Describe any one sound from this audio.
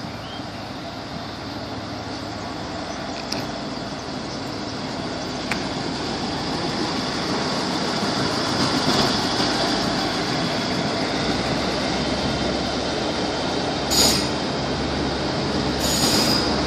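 A train rumbles past close by, its engine droning and growing louder.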